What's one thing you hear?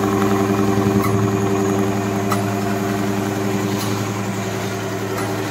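An industrial sewing machine hums and whirs steadily as it stitches.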